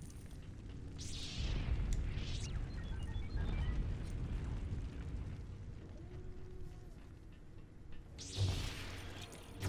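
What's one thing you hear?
Lightsabers hum and swing with sharp whooshes.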